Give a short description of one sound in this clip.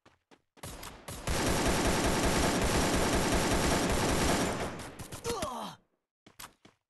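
Rapid automatic gunfire rattles loudly.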